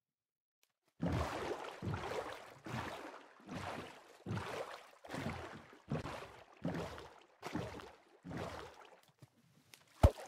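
Oars splash rhythmically through water.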